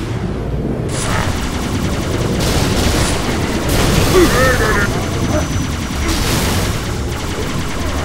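Plasma blasts crackle and explode nearby.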